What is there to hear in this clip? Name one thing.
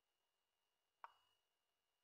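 A chess piece lands on the board with a short wooden knock.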